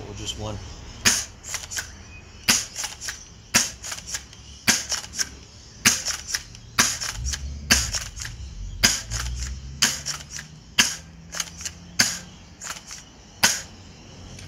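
An airsoft shotgun fires with sharp cracks at a steady pace.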